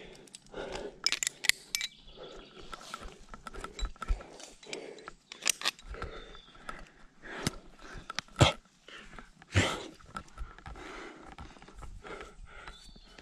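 Metal climbing gear clinks against rock.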